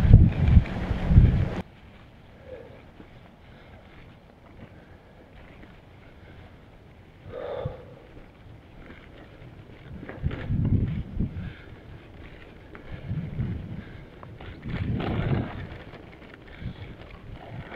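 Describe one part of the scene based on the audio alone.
Bicycle tyres roll and crunch over a gravel track.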